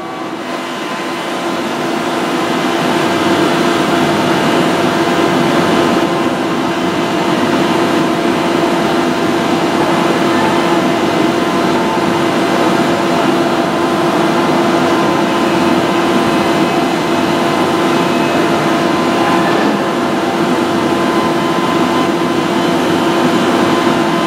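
A train engine rumbles and hums steadily.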